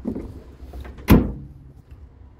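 A truck tailgate slams shut with a thud.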